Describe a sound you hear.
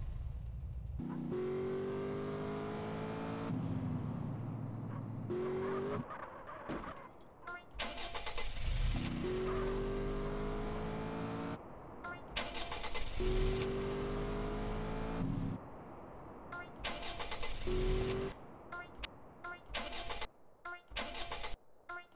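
A car engine revs hard, climbing in pitch again and again as it shifts gears.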